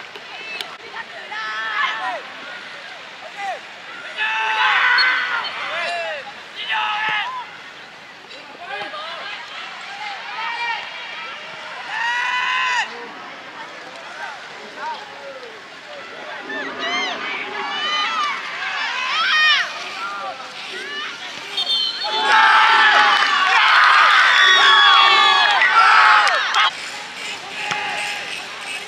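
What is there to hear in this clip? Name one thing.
Young boys shout and call out to each other outdoors.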